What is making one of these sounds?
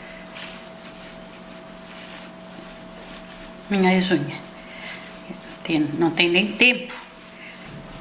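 Hands roll a strip of soft dough on a stone counter with a faint rubbing.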